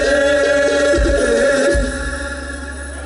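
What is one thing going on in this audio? Several men sing together loudly through microphones over a sound system.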